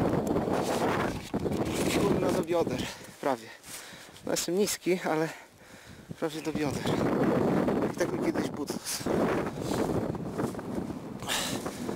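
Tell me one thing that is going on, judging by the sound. Boots crunch through snow.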